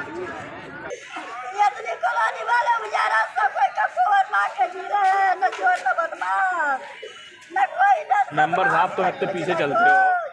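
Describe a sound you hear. An elderly woman wails and pleads tearfully, close by.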